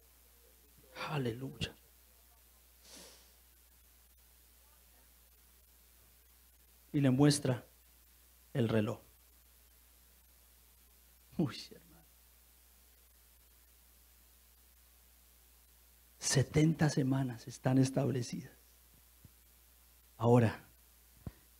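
A man speaks with emphasis into a microphone, in short bursts with long pauses.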